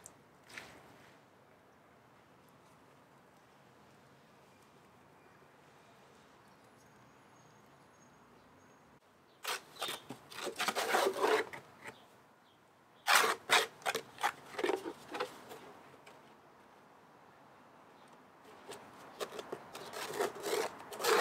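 Thick wet mud pours and splashes into a plastic bucket.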